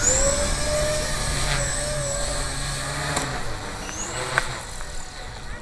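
An electric radio-controlled model helicopter whines overhead.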